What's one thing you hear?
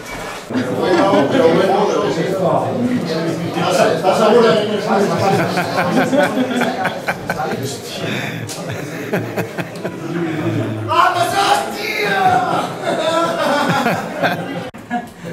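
Several men talk and shout excitedly close by.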